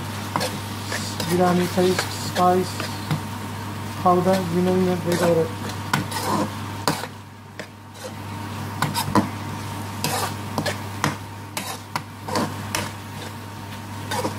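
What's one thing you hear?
A spatula scrapes and clatters against a metal pan.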